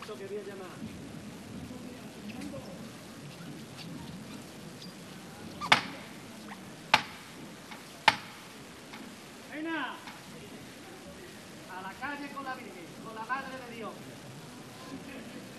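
A crowd murmurs and chatters outdoors.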